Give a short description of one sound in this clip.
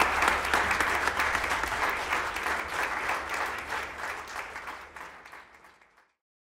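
An audience applauds in a hall and slowly fades out.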